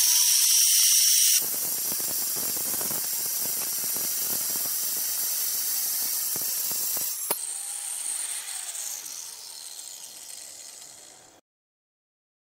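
An angle grinder cuts through a ceramic tile with a harsh grinding noise.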